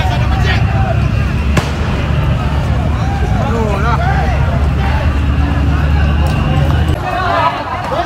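A crowd of young men shouts and yells outdoors.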